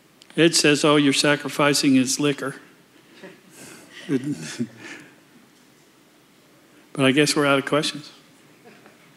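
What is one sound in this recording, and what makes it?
An elderly man speaks into a microphone in a calm, measured voice.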